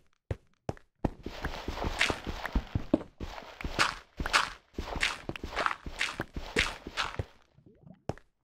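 A shovel scrapes and crunches through gravel.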